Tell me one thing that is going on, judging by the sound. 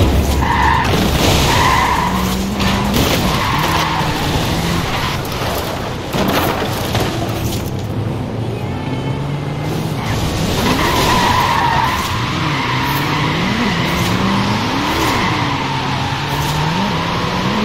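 A car engine revs hard, rising and falling in pitch.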